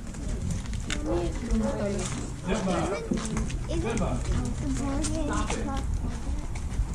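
Young girls talk nearby.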